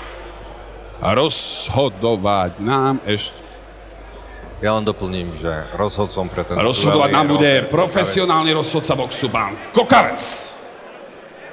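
A man speaks loudly through a loudspeaker in a large echoing hall.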